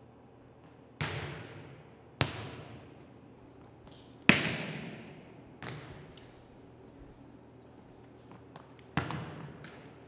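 A volleyball is served with a sharp slap that echoes through a large hall.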